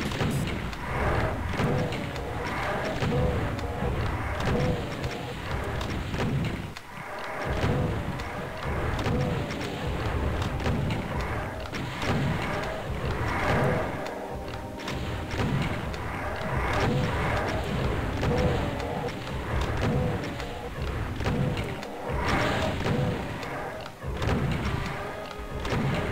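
A shotgun is reloaded with metallic clicks.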